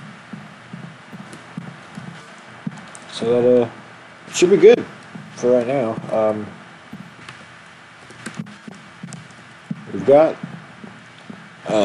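Footsteps tap steadily on wooden boards.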